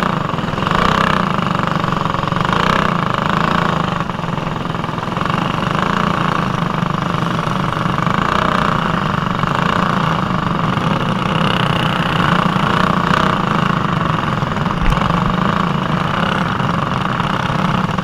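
A kart engine buzzes loudly up close, rising and falling in pitch as it revs.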